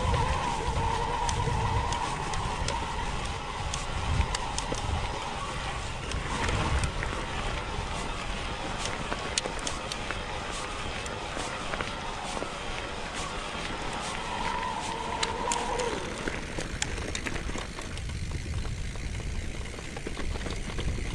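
Bicycle tyres crunch over a gravel track.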